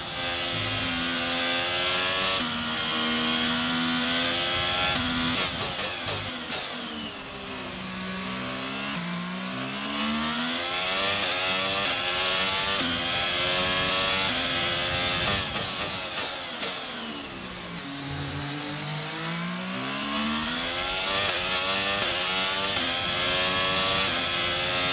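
A racing car engine screams at high revs, shifting up through the gears and dropping in pitch as it brakes for corners.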